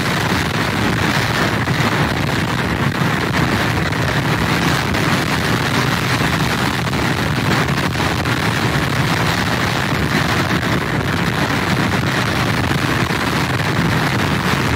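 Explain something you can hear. Heavy surf crashes and roars against pier pilings.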